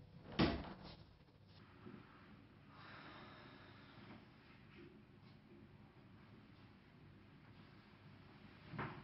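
Footsteps move quietly across a room.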